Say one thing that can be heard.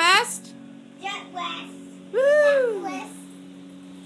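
A toddler girl squeals and babbles nearby.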